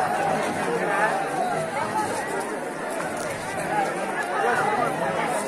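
A large outdoor crowd of men and women chatter and shout all around.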